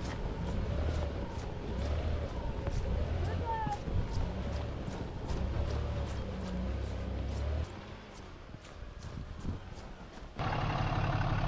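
Tyres crunch over packed snow.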